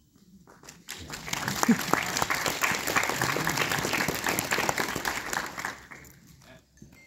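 Children shake small jingle bells in a large hall.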